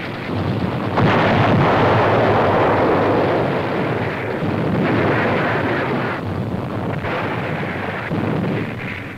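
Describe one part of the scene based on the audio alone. A large explosion booms and rumbles on.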